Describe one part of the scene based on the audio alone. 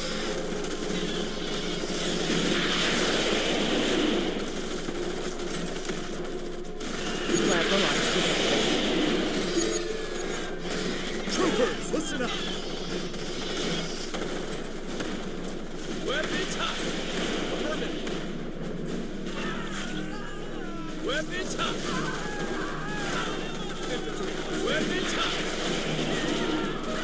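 Gunfire crackles and rattles in a battle.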